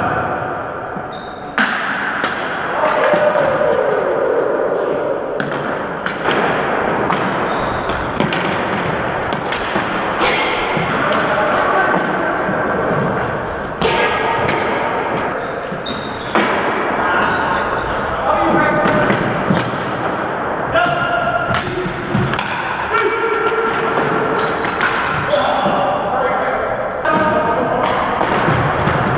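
Hockey sticks clack against a ball and the floor in a large echoing hall.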